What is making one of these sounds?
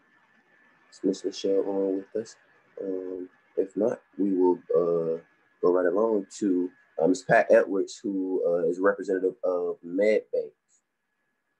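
A young man speaks calmly through an online call microphone.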